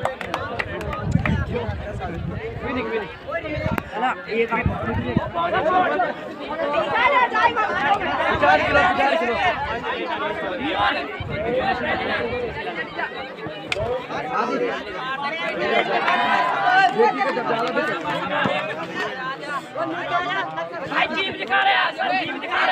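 A large outdoor crowd of young people shouts and cheers loudly.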